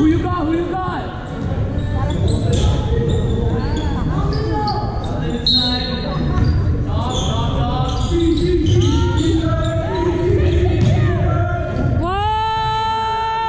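People chatter in a large echoing gym.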